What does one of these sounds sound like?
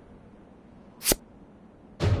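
A game button gives a sharp click.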